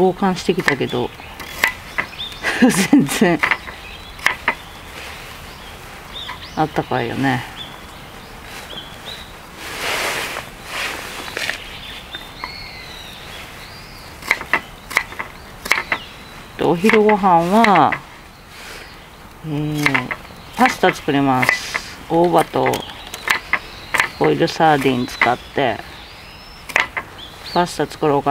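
A knife taps and cuts against a wooden board.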